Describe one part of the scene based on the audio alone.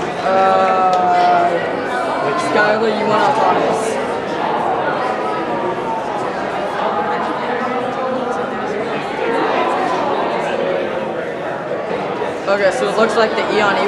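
A crowd of young people chatters throughout a large echoing hall.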